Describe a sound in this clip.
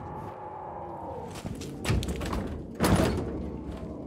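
A heavy metal door bangs open.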